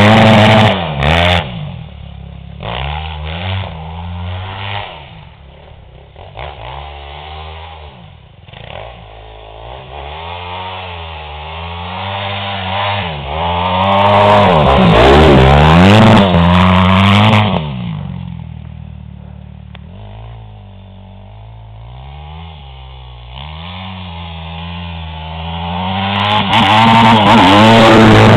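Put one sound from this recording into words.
A dirt bike engine revs up and down, loud when close and fading as it rides away.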